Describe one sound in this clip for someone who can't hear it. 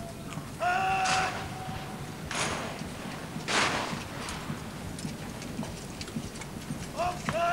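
A man shouts a long, drawn-out command outdoors.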